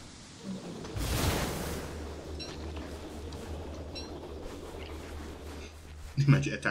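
A gusty wind whooshes and swirls.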